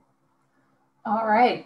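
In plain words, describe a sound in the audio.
A woman speaks brightly over an online call.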